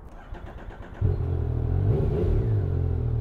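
A motorcycle engine starts with a sudden roar.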